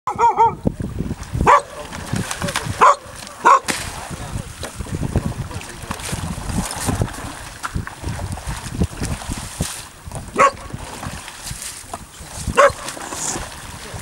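Feet splash and slosh through shallow water.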